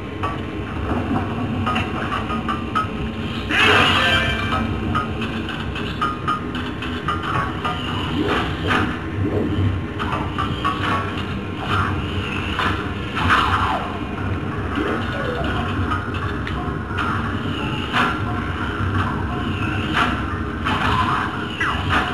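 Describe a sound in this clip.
Game music and sound effects play from a television loudspeaker.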